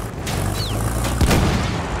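A heavy machine gun fires a burst.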